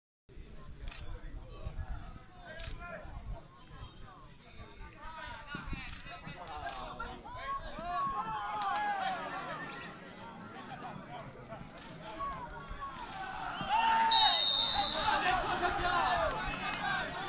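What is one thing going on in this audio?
Young men shout to each other across an open outdoor football pitch.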